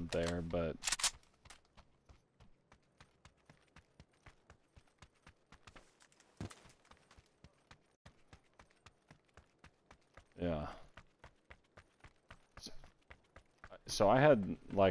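Footsteps patter quickly and evenly on hard ground.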